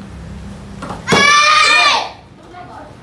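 A young girl shouts a sharp karate kiai.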